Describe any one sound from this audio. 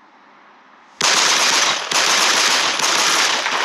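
A gunshot fires loudly.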